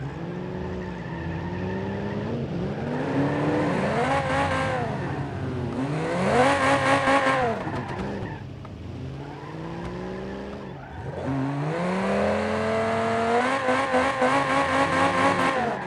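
Tyres screech as a car skids and spins.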